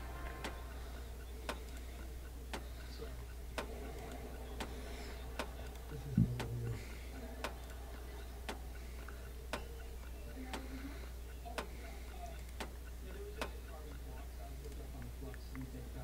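A clock ticks steadily about once a second.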